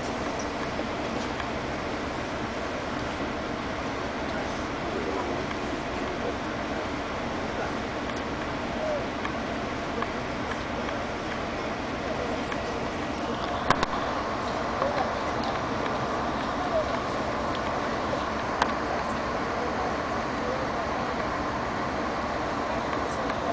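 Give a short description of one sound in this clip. A diesel locomotive idles with a low steady rumble.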